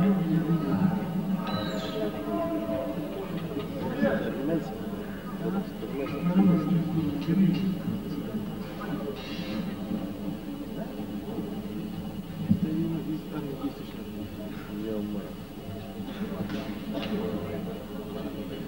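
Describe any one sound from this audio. A live band plays music through loudspeakers in a large hall.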